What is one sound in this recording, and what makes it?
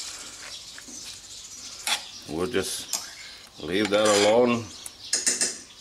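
A spoon scrapes against the inside of a ceramic pot.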